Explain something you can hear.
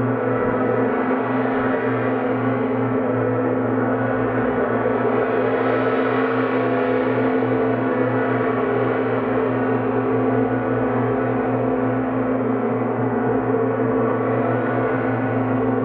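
A singing bowl rings with a sustained, shimmering tone.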